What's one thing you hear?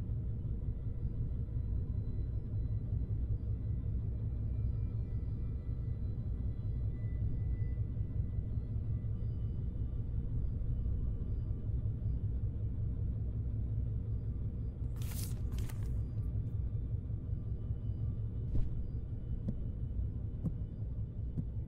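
A low, steady electrical hum drones throughout.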